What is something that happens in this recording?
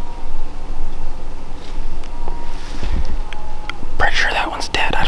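A man whispers close to a microphone.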